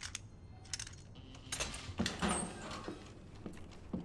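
A padlock snaps open.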